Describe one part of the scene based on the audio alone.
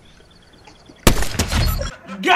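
A sniper rifle fires a single sharp shot.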